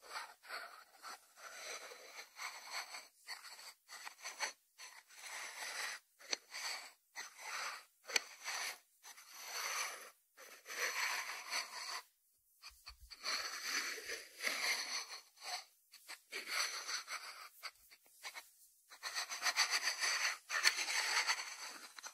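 Fingers rub and scrape across a ceramic dish on a wooden board.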